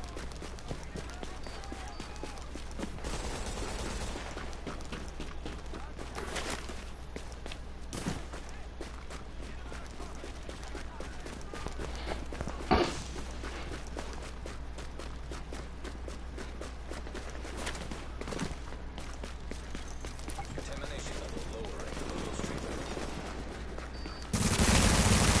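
Footsteps run quickly over snowy ground.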